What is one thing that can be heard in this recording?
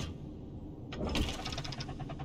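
Hands push against a heavy wooden door.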